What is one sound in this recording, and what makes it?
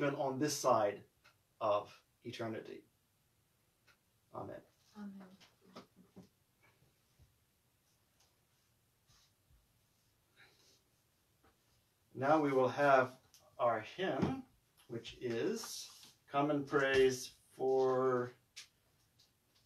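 A man speaks calmly and clearly, close by, with pauses.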